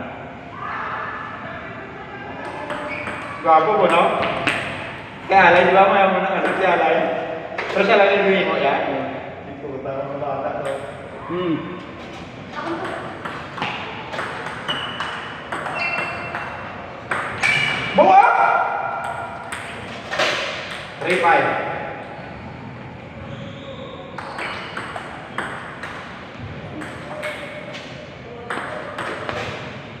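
A ping pong ball clicks back and forth on paddles and a table.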